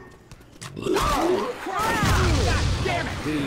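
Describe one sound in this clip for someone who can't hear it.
A bloated creature bursts wetly in a video game.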